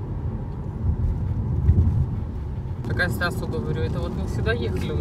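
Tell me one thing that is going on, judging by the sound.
A car engine hums and tyres rumble on a wet road.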